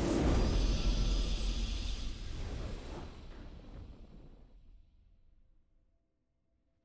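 A triumphant game fanfare booms out and slowly fades away.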